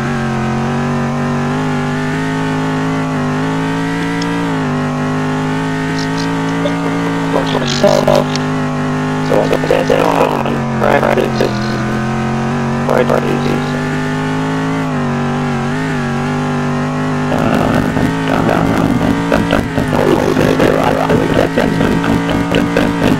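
A racing car engine roars steadily at high revs, its pitch shifting with gear changes.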